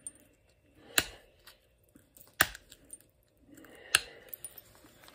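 A tool taps and clicks sharply against stone.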